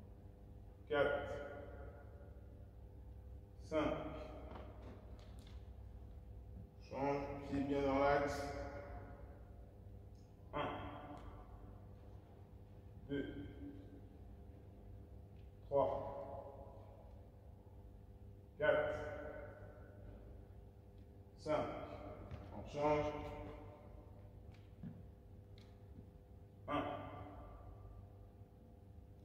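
A man's feet thud and shuffle on a hard floor in a large echoing hall.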